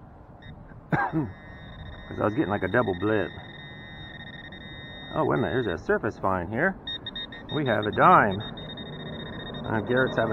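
A handheld metal detector gives a steady high beeping tone.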